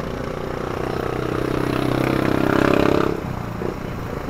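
A motorbike passes close by, its engine swelling then fading.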